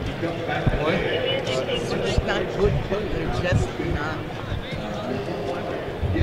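A crowd murmurs in a large arena.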